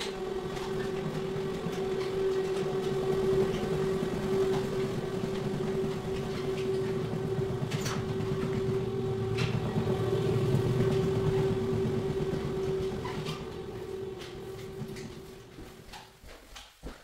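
A floor buffer machine hums and whirs steadily.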